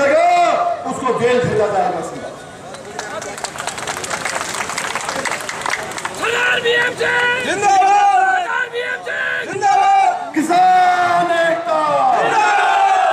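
An older man speaks forcefully into a microphone over a loudspeaker.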